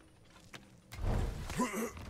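A heavy wooden chest creaks open with a rumble.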